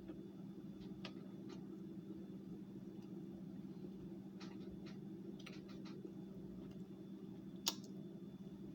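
A spoon clinks and scrapes against a hollowed pineapple.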